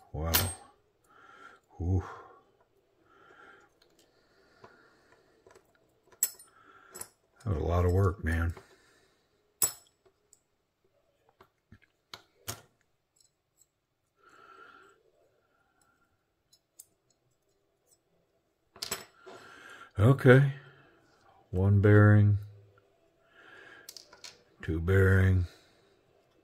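Small knife parts click and tap as hands handle them.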